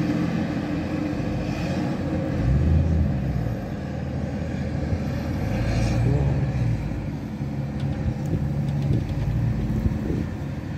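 A car drives slowly over snow with a low engine hum.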